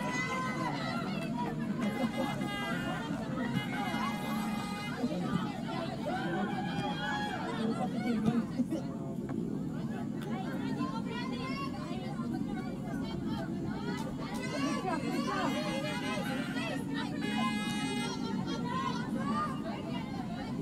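A crowd of young spectators chatters and shouts nearby.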